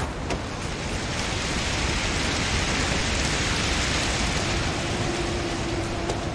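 Steam hisses steadily from a vent.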